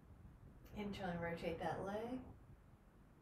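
A woman speaks calmly and briefly, close by.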